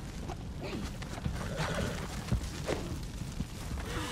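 A horse's hooves thud on the ground at a gallop.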